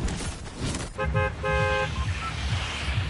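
A menu chimes with short electronic beeps.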